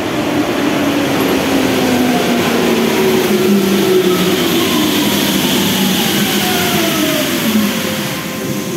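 Steel wheels clatter over the rail joints.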